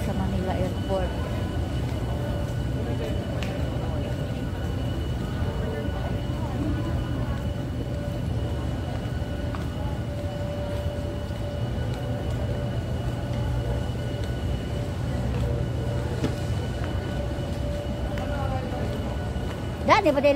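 A low steady hum fills a large indoor hall.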